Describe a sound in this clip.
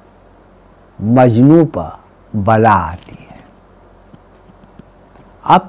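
An elderly man speaks close by with animation, in short bursts.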